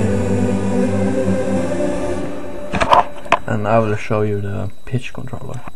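An electronic keyboard plays sustained synth notes.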